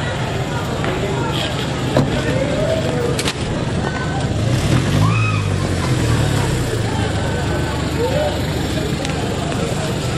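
A crowd of people talks and calls out outdoors.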